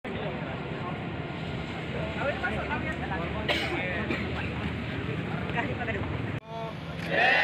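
A crowd of young men chatters outdoors.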